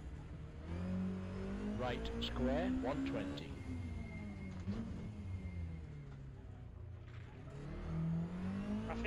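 A car engine revs hard, rising and falling in pitch as gears change.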